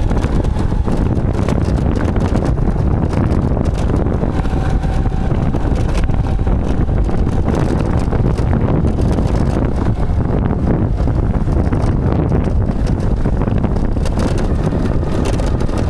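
A motor scooter rides along at a steady speed.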